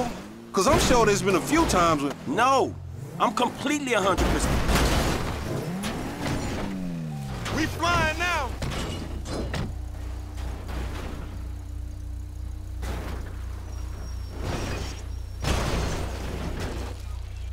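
A car crashes and tumbles down a rocky slope with heavy thuds and crunching metal.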